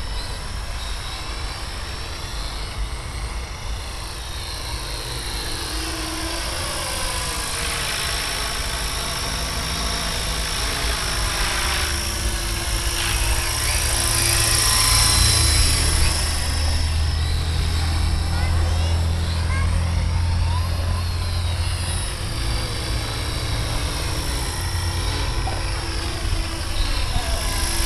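A model helicopter's engine whines steadily overhead, growing louder as it passes close and then easing off.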